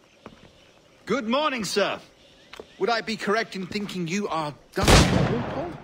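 A young man speaks politely and calmly, close by.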